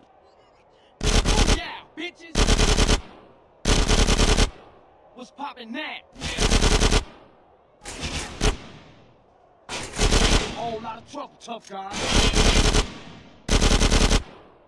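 A submachine gun fires in loud, rapid bursts.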